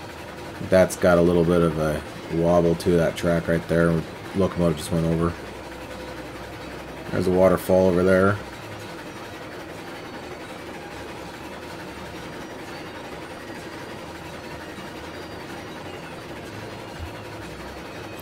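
A steam locomotive rumbles steadily along the tracks.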